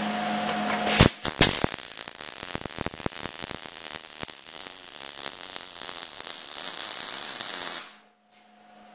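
A welding torch crackles and sizzles steadily.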